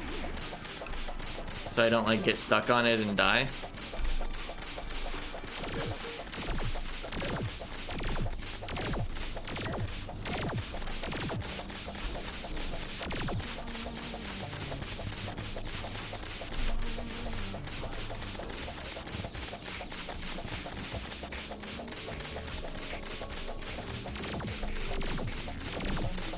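Rapid shots and magic bolts fire and hit, with crackling impacts throughout.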